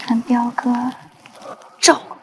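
A young man speaks softly up close.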